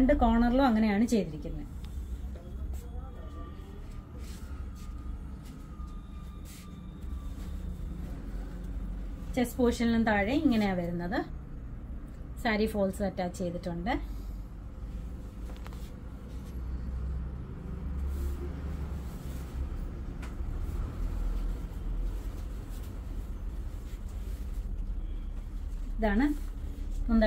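Cloth rustles as a woman handles it.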